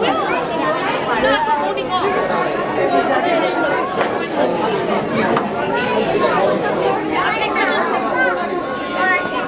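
A crowd of men and women chatter all around in a busy indoor room.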